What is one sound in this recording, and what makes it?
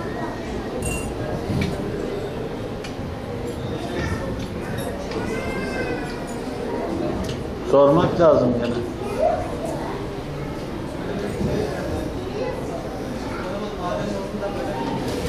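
An elderly man speaks calmly to a small group.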